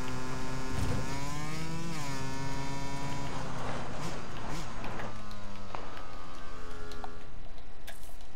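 A dirt bike engine runs, then idles and cuts off.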